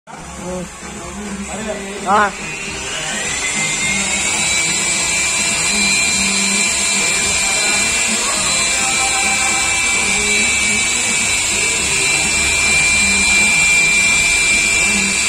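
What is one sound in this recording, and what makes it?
An electric polisher whirs steadily with a high hum.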